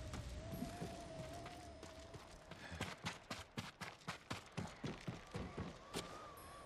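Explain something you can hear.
Footsteps run quickly across wooden boards.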